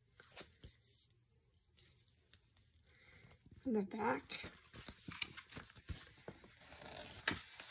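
Stiff cardboard rustles and taps as it is handled.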